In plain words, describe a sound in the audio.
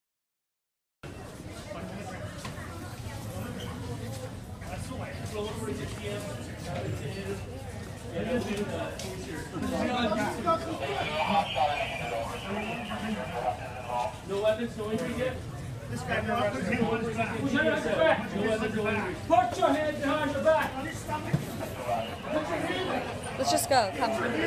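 Several men and women talk at once nearby, in an echoing tiled passage.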